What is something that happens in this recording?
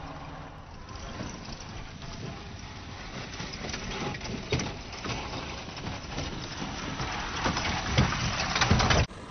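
Loose stones crunch and clatter under small tyres.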